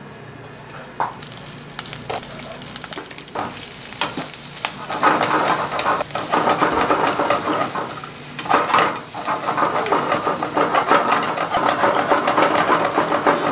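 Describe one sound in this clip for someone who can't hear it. Oil sizzles loudly in a hot pan.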